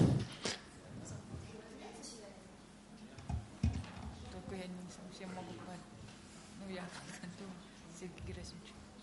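A man speaks calmly at a distance.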